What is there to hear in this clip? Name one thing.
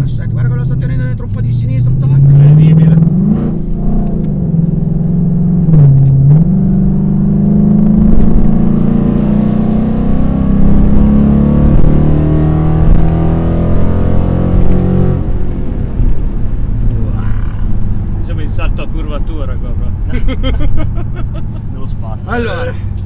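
Tyres and wind rush steadily inside a moving car.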